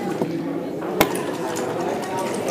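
A playing piece clicks down onto a wooden board.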